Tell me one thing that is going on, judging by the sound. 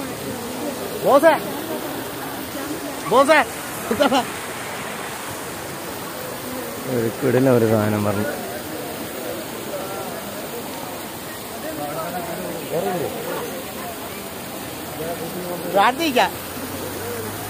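Men call out loudly nearby.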